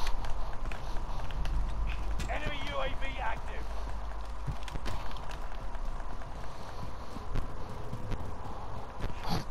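Footsteps run quickly over hard pavement.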